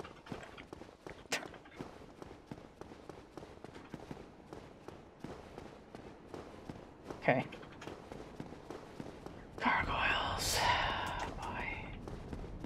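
Footsteps thud quickly and steadily on stone.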